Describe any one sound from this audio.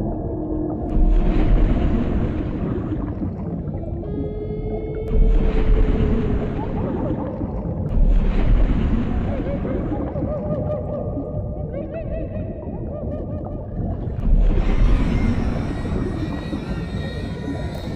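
A large sea creature roars loudly in bursts.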